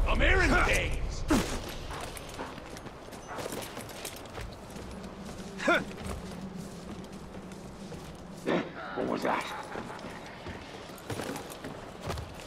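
Boots scrape and thud on wooden planks during climbing.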